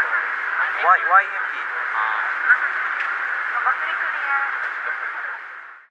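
A young man talks and laughs softly close by.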